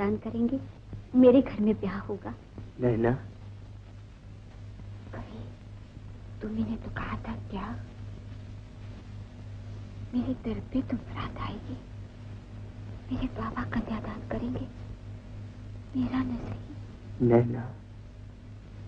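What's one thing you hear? A young woman speaks with emotion, close by.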